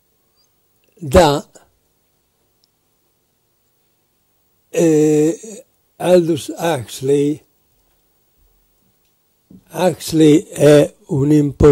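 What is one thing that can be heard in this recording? An elderly man speaks calmly into a microphone, in pauses.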